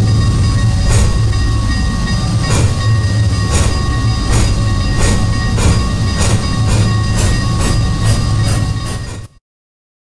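Steam locomotive wheels click over rail joints at a quickening pace.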